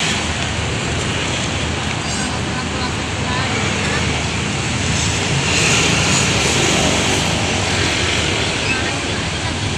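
Bus engines idle with a steady low rumble outdoors.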